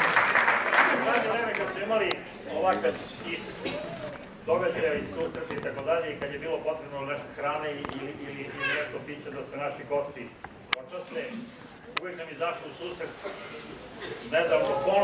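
A man speaks through a loudspeaker, reading out.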